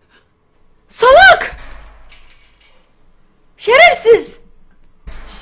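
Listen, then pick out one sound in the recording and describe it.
A young woman screams loudly and shrilly into a close microphone.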